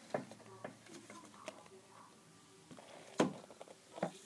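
Scissors knock against a hard surface.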